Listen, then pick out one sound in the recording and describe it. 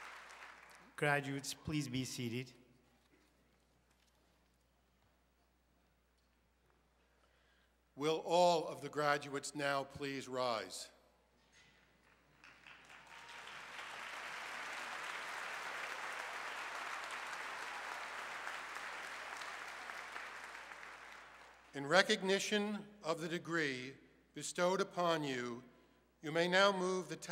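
A man speaks calmly into a microphone, heard through loudspeakers in a large echoing hall.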